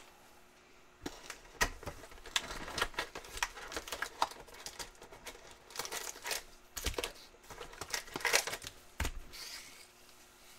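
Trading cards click and shuffle.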